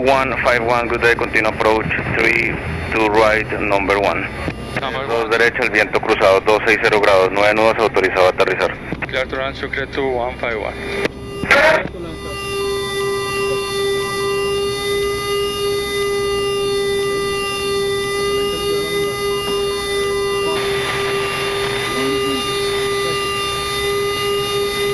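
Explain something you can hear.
Aircraft engines hum steadily inside the cockpit.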